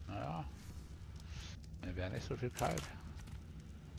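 A campfire crackles and pops.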